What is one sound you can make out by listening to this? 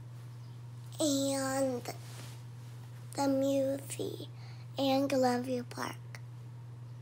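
A young girl speaks close by in short bursts.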